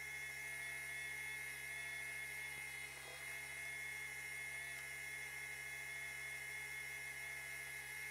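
A sewing machine hums steadily.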